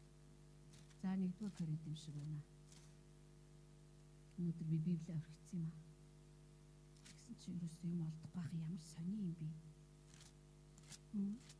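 A middle-aged woman speaks calmly into a microphone, heard through a loudspeaker.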